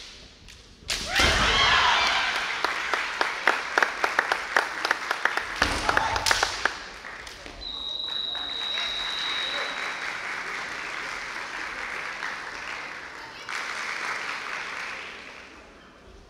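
Fencers shout loudly and sharply in a large echoing hall.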